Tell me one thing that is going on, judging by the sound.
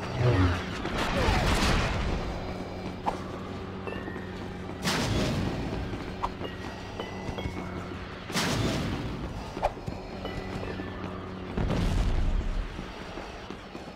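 A rocket explosion booms and roars.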